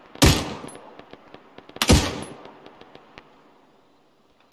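A rifle fires two loud shots that echo and roll away.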